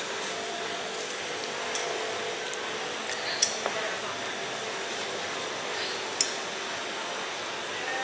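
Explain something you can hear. Dry beans rattle as a metal scoop dips into a glass jar.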